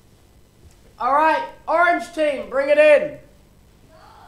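A young man talks loudly and playfully nearby.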